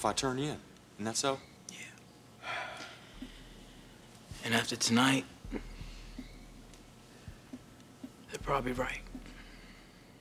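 A young man talks casually.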